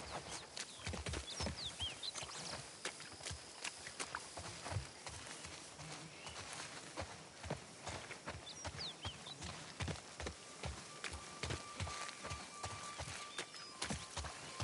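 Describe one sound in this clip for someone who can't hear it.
Footsteps run quickly through tall grass and brush.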